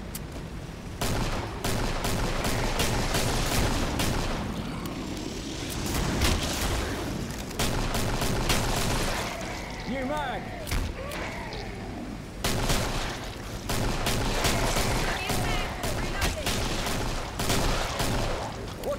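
Rapid gunfire rattles and echoes down a corridor.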